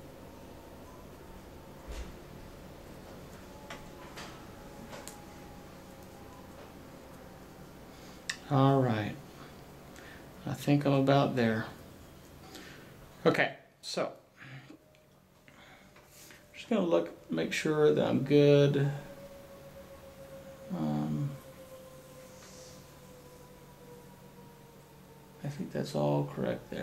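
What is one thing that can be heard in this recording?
A cord rustles softly as fingers braid it.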